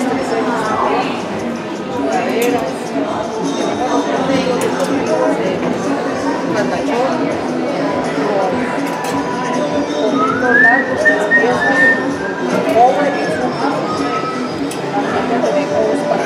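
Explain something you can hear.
Plastic hangers clack against a clothes rail.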